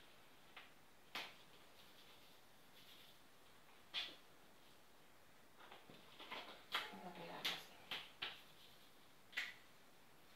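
Paper cards tap and rustle against a board.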